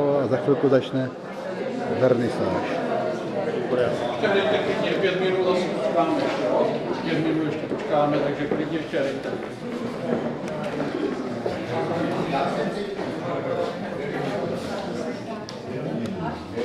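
A crowd of men and women chat in a large echoing hall.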